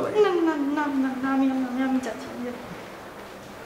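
A woman speaks with emotion, pleading close by.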